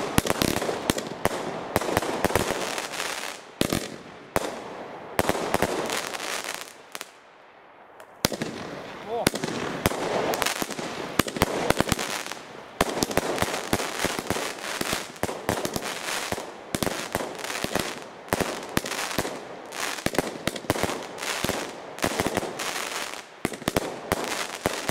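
Fireworks bang and crackle in rapid bursts outdoors.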